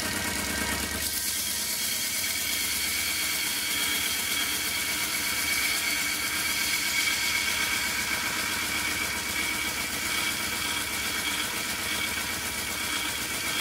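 An electric motor hums steadily as a sanding belt runs.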